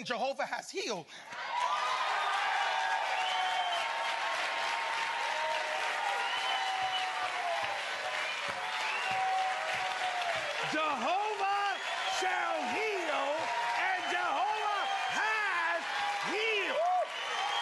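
A man shouts excitedly over a microphone.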